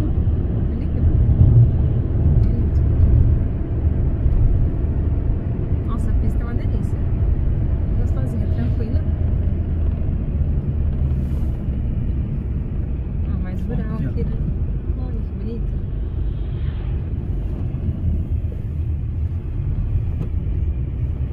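A car engine hums steadily with tyres rumbling on the road, heard from inside the car.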